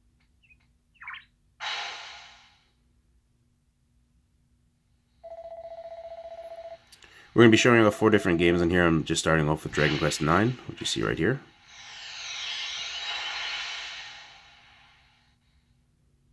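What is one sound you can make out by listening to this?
A handheld game console plays chimes and beeps through a small speaker.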